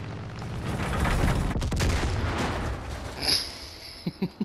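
A plane crashes with a loud rumbling impact.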